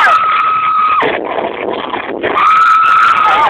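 A crowd cheers and shouts.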